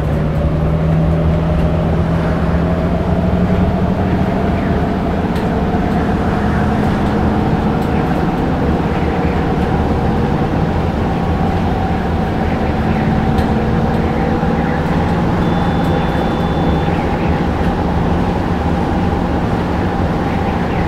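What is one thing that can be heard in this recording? A diesel city bus engine drones as the bus cruises along an open road.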